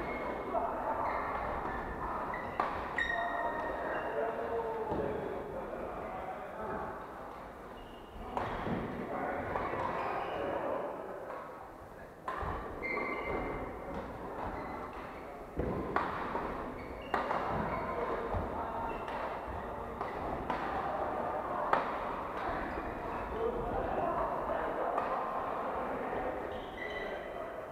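Shuttlecocks are hit with sharp pops of rackets in a large echoing hall.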